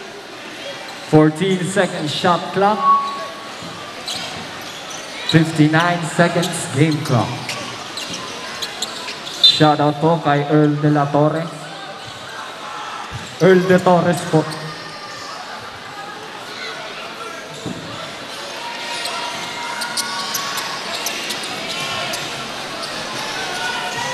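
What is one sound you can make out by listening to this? A crowd murmurs in the background.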